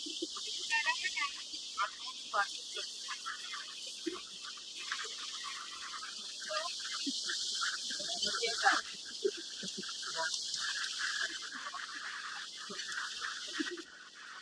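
A herd of wildebeest splashes across a river.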